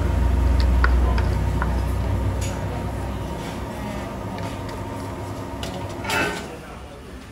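A ladle scrapes and clinks against the inside of a clay mortar.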